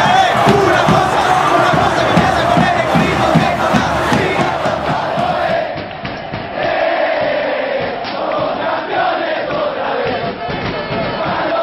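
A large crowd chants and cheers loudly.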